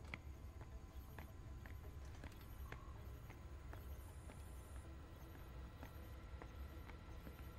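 Footsteps tap on a hard floor at a steady walking pace.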